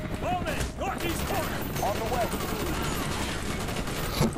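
A rifle fires in short bursts nearby.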